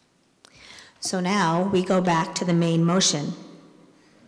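A woman speaks clearly into a microphone over a loudspeaker in an echoing hall.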